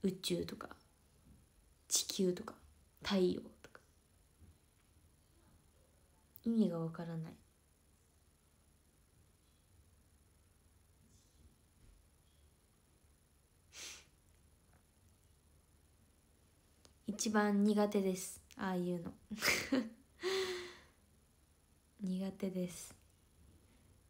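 A young woman talks calmly and close up in short bursts, with pauses between them.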